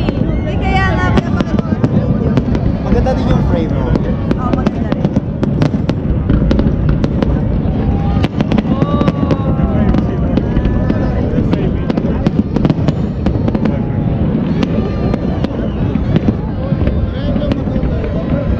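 Firework rockets whistle as they rise.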